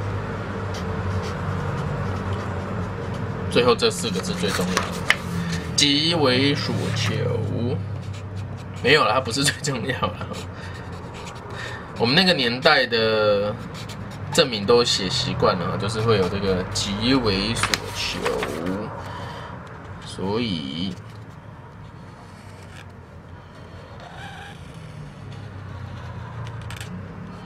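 A marker squeaks on paper.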